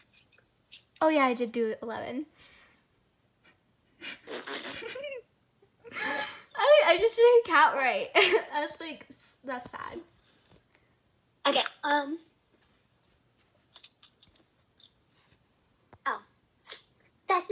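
Young women talk and laugh with animation over an online call.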